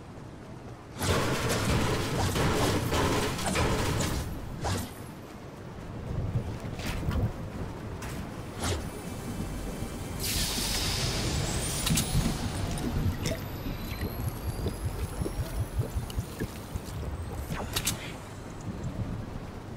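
Footsteps run across a metal bridge.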